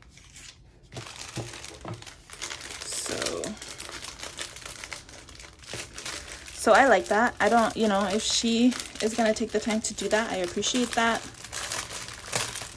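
A plastic wrapper crinkles and rustles as hands handle it.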